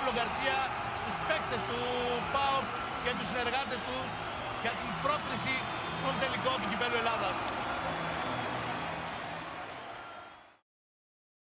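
A group of men shout and cheer excitedly close by.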